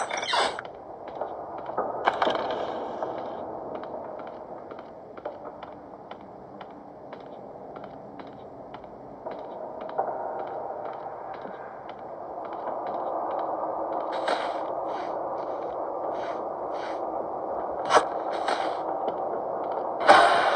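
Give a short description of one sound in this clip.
Footsteps tap on a hard floor at a steady pace.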